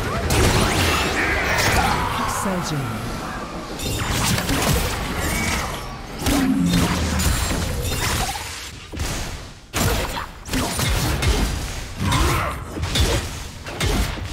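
Game spell effects whoosh and crackle as characters fight.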